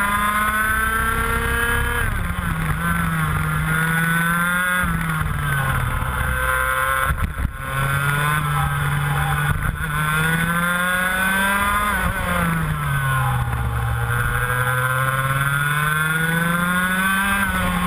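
A go-kart engine buzzes loudly close by, its pitch rising and falling as it speeds up and slows for the corners.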